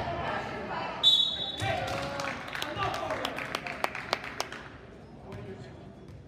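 Spectators talk and call out in an echoing gym.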